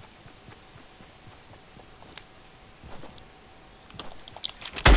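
A game character's footsteps patter softly on grass.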